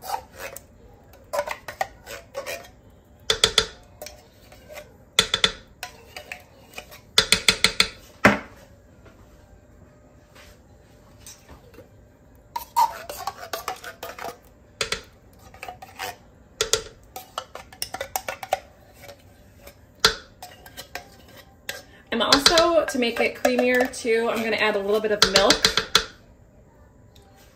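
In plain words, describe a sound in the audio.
A spatula scrapes and taps against a metal can.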